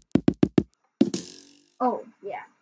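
A block breaks apart with a crunch.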